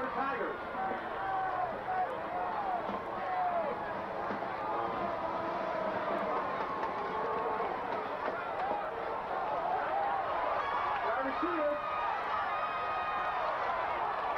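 A large crowd cheers and shouts far off, outdoors.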